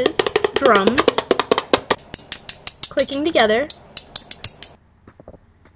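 Plastic clicks and taps rapidly against a plastic bowl.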